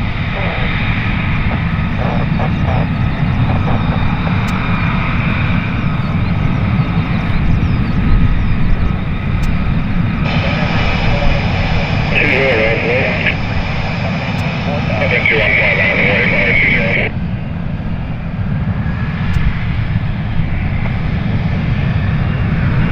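A jet engine whines with a high steady tone.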